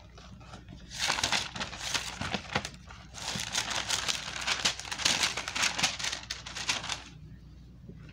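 Something rustles as it is handled close by.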